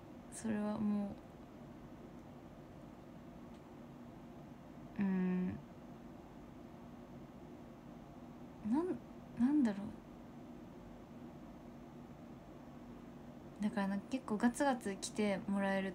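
A young woman speaks softly and casually close to a microphone, in short bursts.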